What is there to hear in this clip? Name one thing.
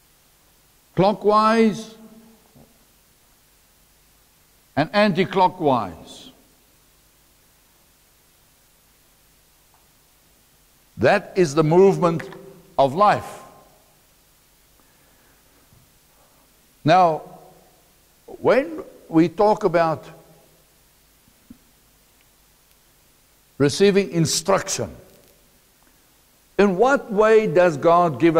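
A middle-aged man speaks in short bursts through a clip-on microphone, in a room with some echo.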